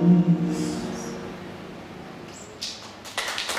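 A guitar chord rings out in a room and slowly fades.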